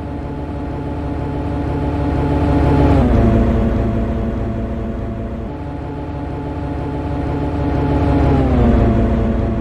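A train rolls past with a steady rumble of wheels on rails.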